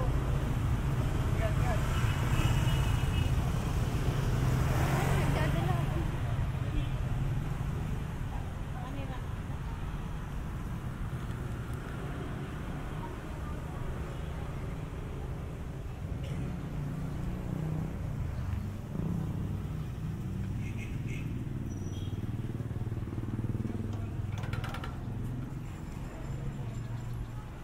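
Outdoor street noise with distant traffic hums steadily.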